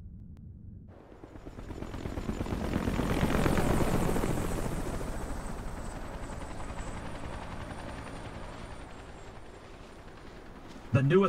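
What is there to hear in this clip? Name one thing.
Helicopters fly overhead with a thudding rotor roar.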